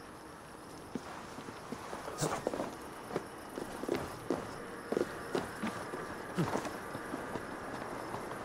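Footsteps and hands thud and scrape on stone while climbing.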